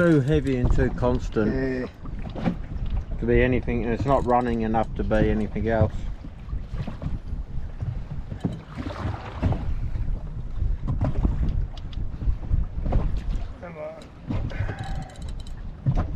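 A fishing reel clicks as a man winds it.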